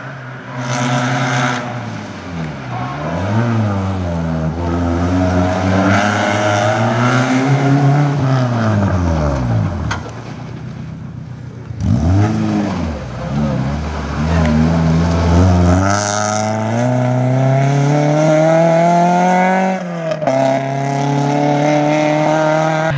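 A rally car engine revs hard, rising and falling in pitch as the car races past.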